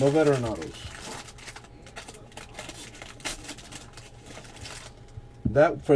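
Foil wrappers crinkle as they are handled.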